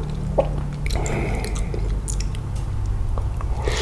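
A man chews and slurps food loudly close to a microphone.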